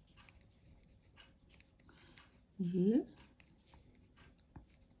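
Knitting needles click and tick softly.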